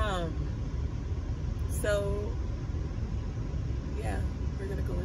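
A young woman talks casually and close by.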